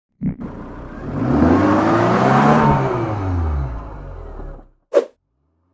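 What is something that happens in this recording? A tyre squeals as it spins in a burnout.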